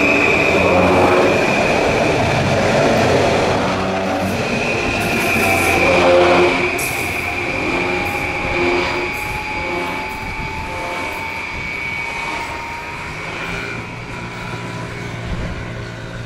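A train's motor whines and slowly fades into the distance.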